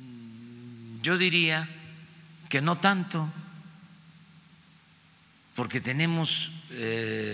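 An elderly man speaks slowly and deliberately into a microphone, with pauses.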